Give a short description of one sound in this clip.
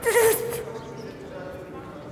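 A woman sobs and wails loudly.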